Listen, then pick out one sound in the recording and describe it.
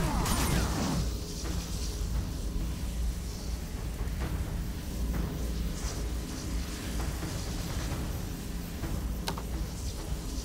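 Fire bursts in small explosions.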